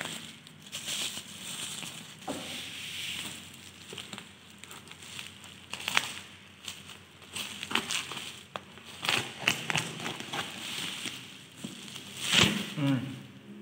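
Plastic bubble wrap crinkles and rustles as it is handled.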